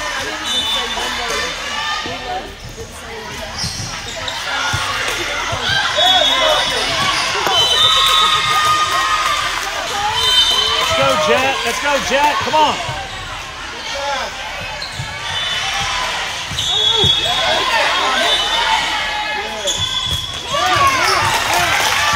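Many voices chatter and call out in a large echoing hall.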